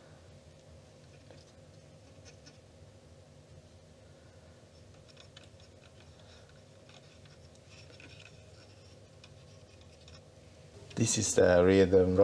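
Small metal parts click faintly.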